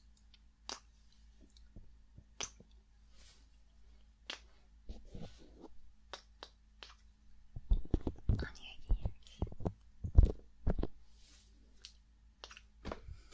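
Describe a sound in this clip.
A young woman makes wet mouth clicks close to a microphone.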